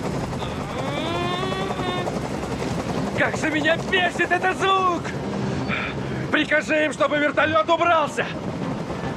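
A man shouts tensely and angrily.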